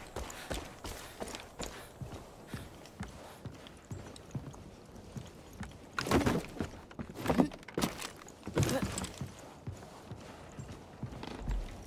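Footsteps thud on a wooden floor.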